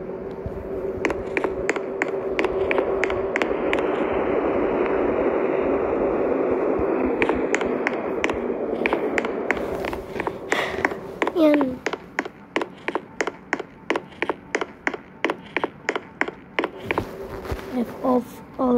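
Quick footsteps patter steadily.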